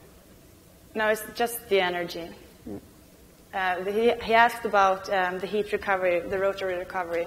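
A woman speaks into a microphone with animation, heard through loudspeakers in a large hall.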